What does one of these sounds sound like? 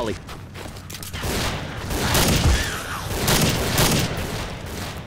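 A rifle fires sharp shots in a run of bursts.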